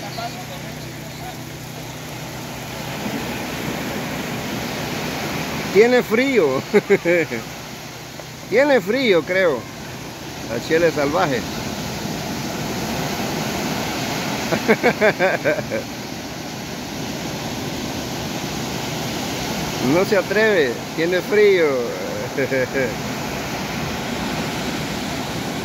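Waves wash and break steadily on a shore.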